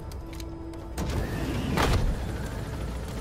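A sliding side door opens with a rush of wind.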